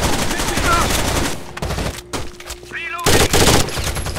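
A gun fires a rapid burst.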